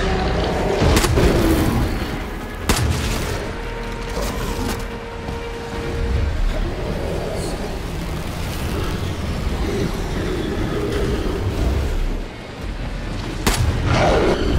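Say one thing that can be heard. A shotgun fires with loud booms.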